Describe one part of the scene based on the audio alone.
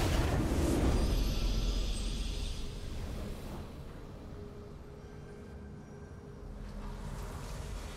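A victory fanfare plays softly.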